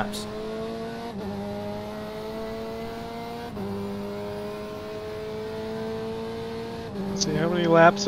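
A racing car engine drones loudly and climbs in pitch, shifting up through the gears.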